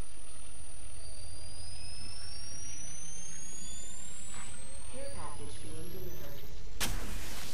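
An electronic charging whine rises in pitch.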